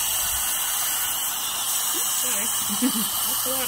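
A dental drill whirs.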